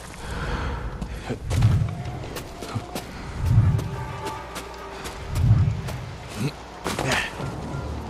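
Thuds sound as a climber scrambles up a snowy roof.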